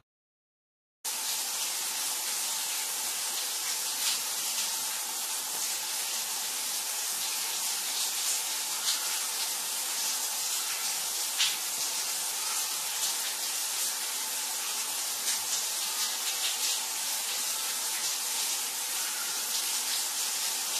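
Water sprays steadily from a shower head.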